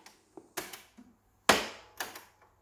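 A cassette door clicks open on a portable player.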